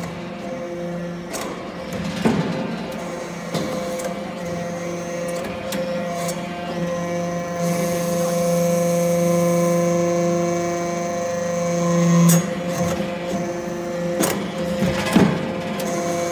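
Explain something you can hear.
A hydraulic press hums steadily with a loud droning whine.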